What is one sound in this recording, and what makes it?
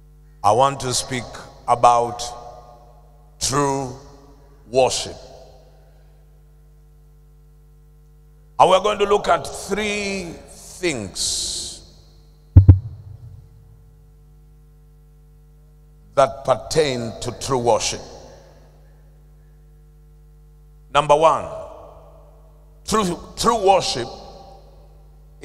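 A man preaches into a microphone with emphatic bursts and long pauses, in a large echoing hall.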